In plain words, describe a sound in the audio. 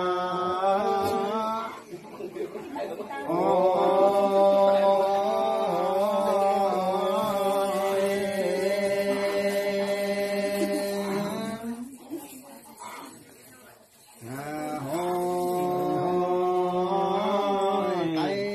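A man chants nearby in long, drawn-out sung phrases.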